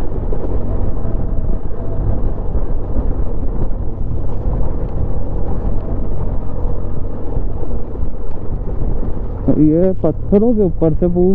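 Tyres crunch over loose gravel and rocks.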